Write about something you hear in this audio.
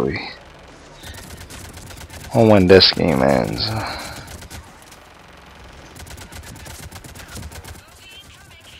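Rapid gunfire bursts in short volleys.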